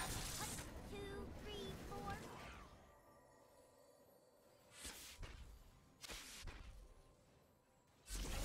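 Game spells whoosh and burst in short blasts.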